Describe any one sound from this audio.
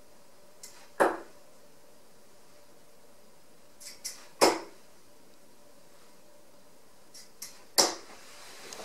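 Darts thud into a dartboard.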